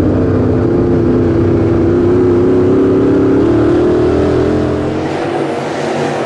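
A race car engine roars loudly up close, its pitch rising and falling.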